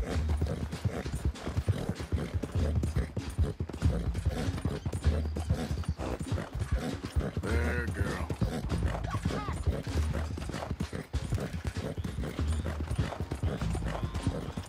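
Horse hooves thud rapidly on soft ground at a gallop.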